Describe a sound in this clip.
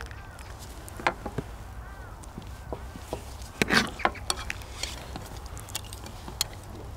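Chopsticks and spoons clink against dishes.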